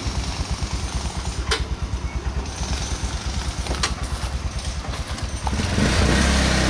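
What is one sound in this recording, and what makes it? A small motor truck's engine idles with a rapid putter.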